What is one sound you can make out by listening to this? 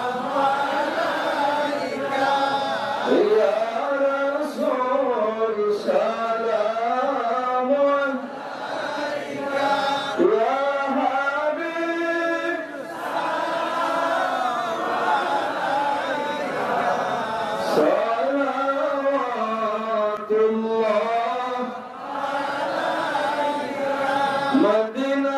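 A middle-aged man sings a devotional chant into a microphone, heard through loudspeakers.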